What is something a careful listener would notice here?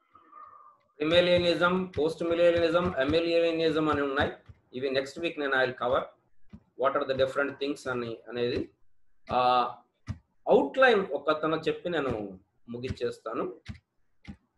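A man speaks steadily through an online call, as if lecturing.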